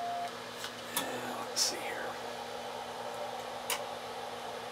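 Switches click on a radio set.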